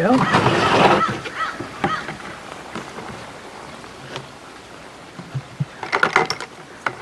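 A plastic lid snaps onto a bucket.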